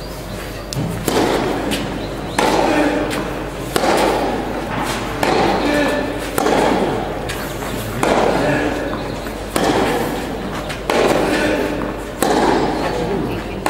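Tennis balls are struck back and forth with sharp pops that echo through a large hall.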